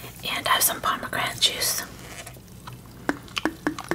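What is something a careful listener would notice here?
A drink gurgles as it is poured into a glass with ice.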